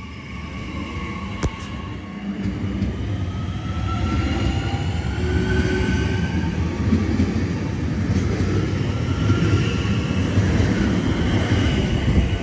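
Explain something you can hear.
A train's motors whine, sliding in pitch as the train slows.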